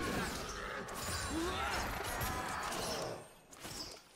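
Game spell effects whoosh and crackle in a fast fight.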